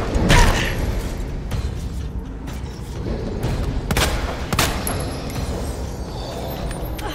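Heavy blows and thuds land in a struggle.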